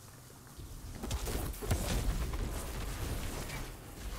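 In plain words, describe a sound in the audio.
A game's explosions boom and fade.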